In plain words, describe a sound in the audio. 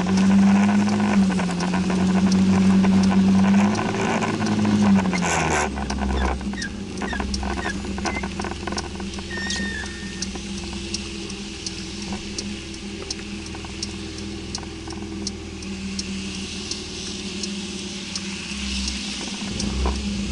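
Raindrops tap on the windscreen.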